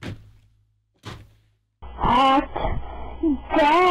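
A man laughs loudly close to a microphone.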